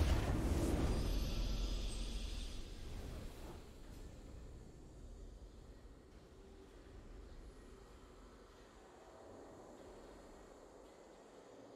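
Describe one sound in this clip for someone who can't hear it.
A soft victory fanfare plays and fades.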